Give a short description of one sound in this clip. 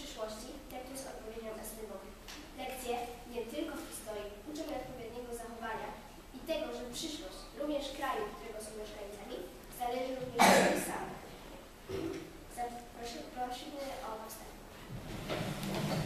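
A young girl recites aloud in a small room.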